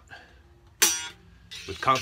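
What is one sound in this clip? A man plucks a stringed instrument.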